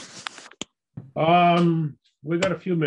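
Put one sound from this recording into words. A man speaks calmly over an online call.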